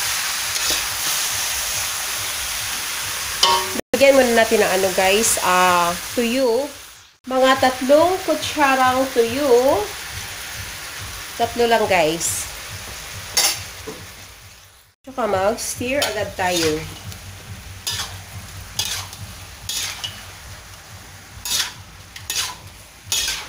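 A metal spatula scrapes and clatters against a wok.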